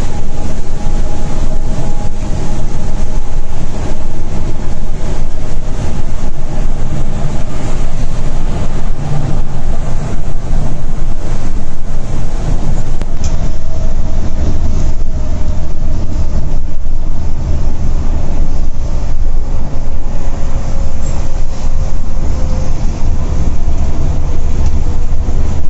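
A diesel coach engine drones while cruising.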